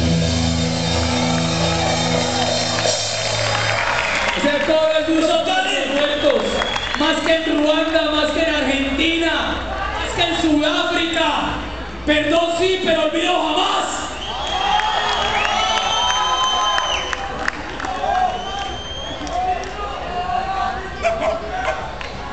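A live band plays loudly through a large outdoor sound system.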